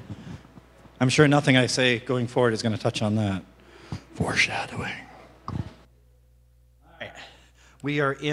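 A man speaks calmly through a loudspeaker in a large, echoing hall.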